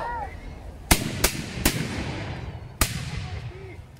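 Single musket shots crack sharply a few times.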